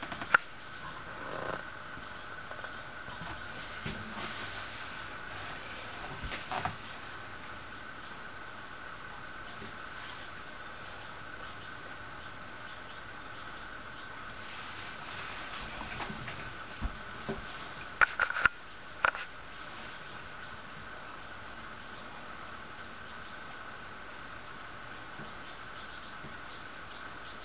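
A small bird splashes in shallow water.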